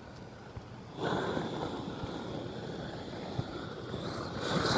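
A gas torch roars as its flame burns.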